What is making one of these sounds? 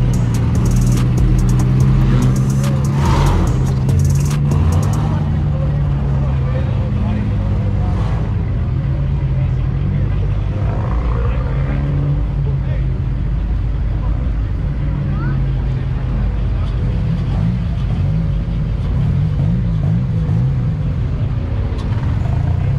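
Car engines rumble as cars drive slowly past one after another.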